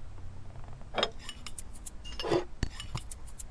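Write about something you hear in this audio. A glass bottle clinks as it is lifted and poured.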